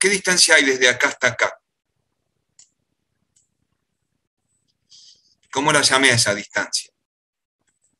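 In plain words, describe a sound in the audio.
A man speaks calmly through a microphone on an online call, in short phrases with pauses.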